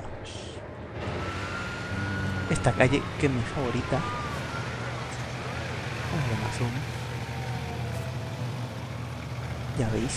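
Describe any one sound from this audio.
Traffic hums steadily along a city street.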